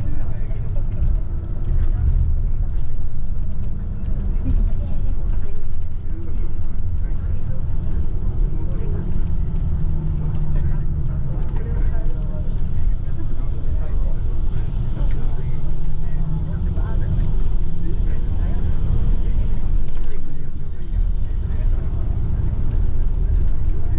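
Tyres roll on the road beneath the bus.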